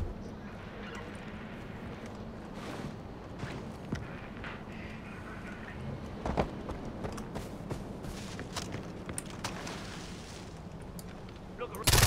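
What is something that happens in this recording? Footsteps crunch and rustle through brush.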